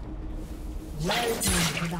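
A game's magic spell whooshes and rings out sharply.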